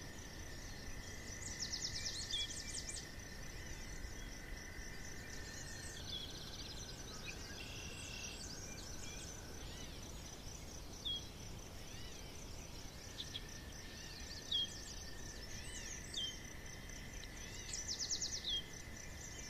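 A hedgehog snuffles softly close by.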